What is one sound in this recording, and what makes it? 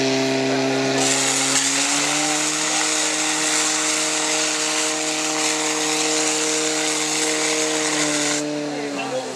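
Powerful water jets hiss and spray loudly.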